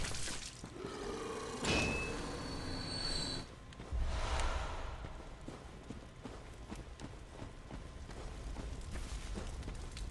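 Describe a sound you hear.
Footsteps tread steadily over soft ground and undergrowth.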